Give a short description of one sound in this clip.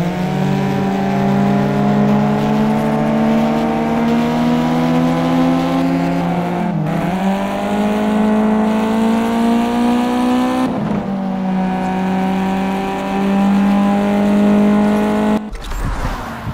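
A car engine roars at high revs, climbing in pitch and dropping briefly with each gear change.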